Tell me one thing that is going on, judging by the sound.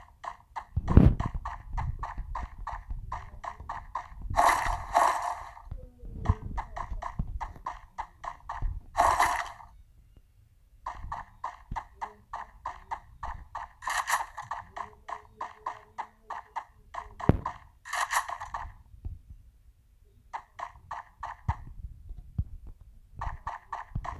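Quick footsteps run across hard ground.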